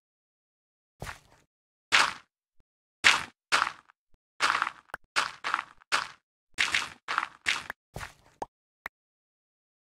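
Dirt and gravel crunch in short bursts as blocks are dug out one after another.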